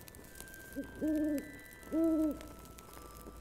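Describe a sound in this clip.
An owl hoots twice.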